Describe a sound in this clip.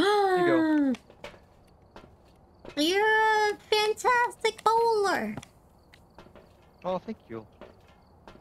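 A young woman talks with animation into a close microphone, in a high, squeaky voice.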